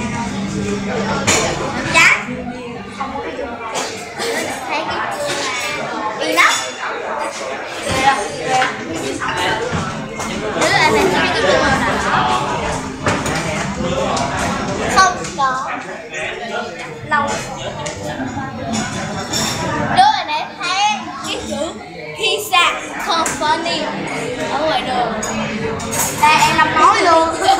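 A second young boy talks and answers nearby.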